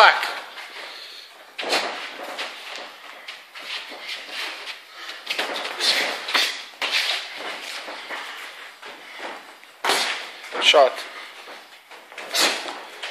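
Feet shuffle and scuff on a padded floor.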